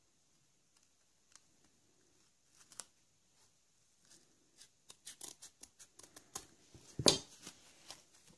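Scissors snip through thick fabric.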